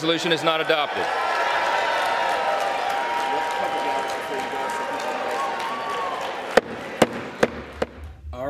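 A large crowd applauds and cheers.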